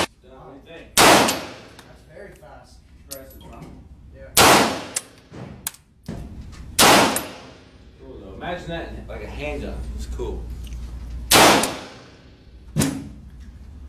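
A pistol fires loud single shots that ring out in an echoing indoor range.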